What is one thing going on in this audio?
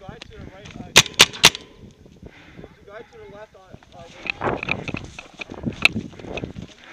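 A paintball marker fires sharp pops in quick bursts, close by.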